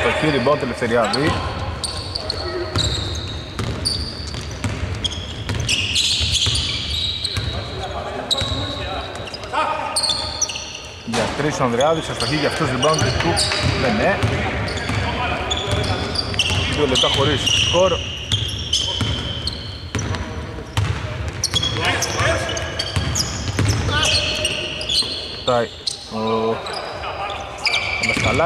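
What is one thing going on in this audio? Men shout to each other across a court in a large echoing hall.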